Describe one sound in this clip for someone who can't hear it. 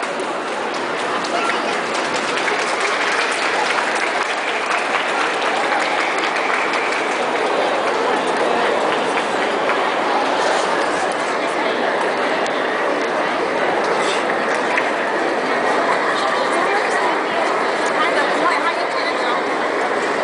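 Feet stamp on a stage as lion dancers leap about.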